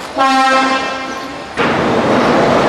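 A train horn sounds briefly.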